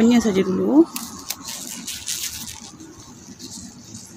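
Leaves rustle as a hand brushes through a plant.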